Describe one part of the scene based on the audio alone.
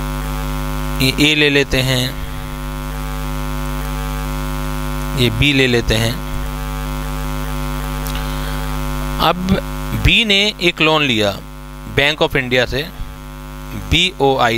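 A man speaks calmly through a headset microphone, in short bursts.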